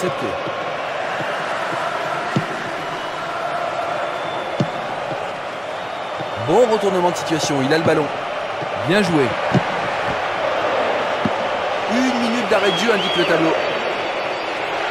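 A football thuds off a boot.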